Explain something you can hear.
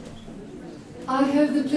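A woman begins speaking into a microphone.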